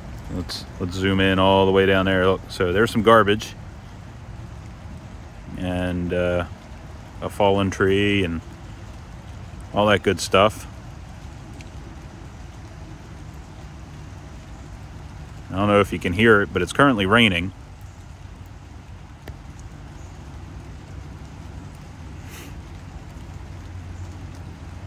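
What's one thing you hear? A shallow stream babbles steadily over stones.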